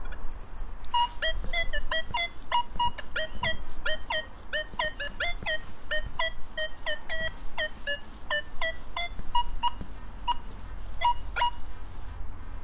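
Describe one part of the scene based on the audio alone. A metal detector gives quick, rapid electronic beeps as it sweeps over the ground.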